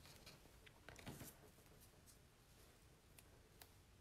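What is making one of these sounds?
A roll of tape is set down on a table with a soft tap.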